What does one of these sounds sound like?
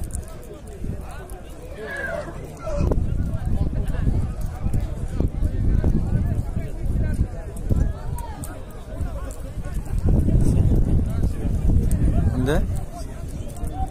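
A large crowd of men murmurs and calls out nearby, outdoors.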